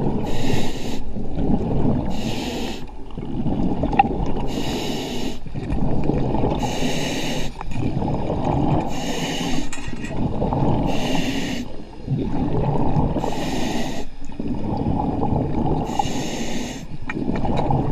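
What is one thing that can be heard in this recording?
A diver breathes in through a scuba regulator with a regular hiss.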